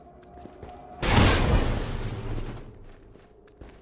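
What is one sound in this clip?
A loud explosion booms and slowly dies away.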